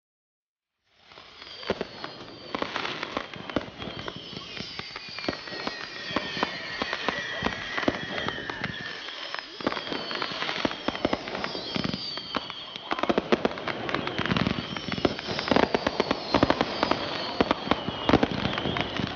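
Fireworks bang and crackle in rapid bursts.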